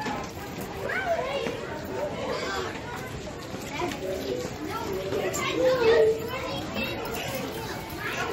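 Children chatter and call out in an echoing hallway.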